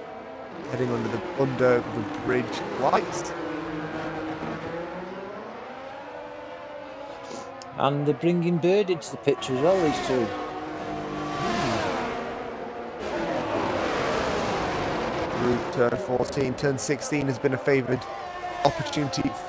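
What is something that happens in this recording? Racing car engines scream at high revs and shift gears.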